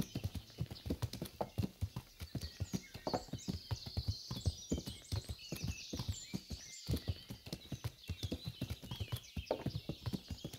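A horse's hooves thud steadily on soft forest ground.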